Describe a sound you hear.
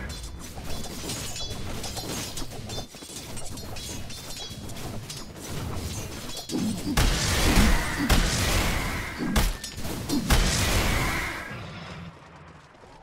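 Game spell effects and combat clashes crackle and boom.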